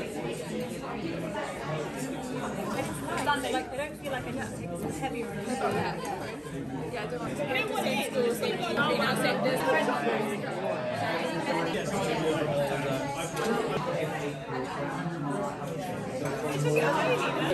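A crowd of men and women chat and laugh at once, in a lively murmur.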